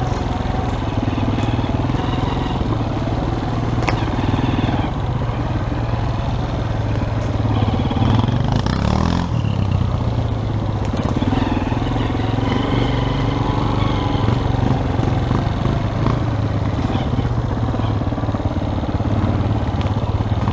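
Tyres crunch over dry leaves and twigs.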